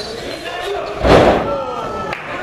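A wrestler's body slams hard onto the ring mat with a loud thud.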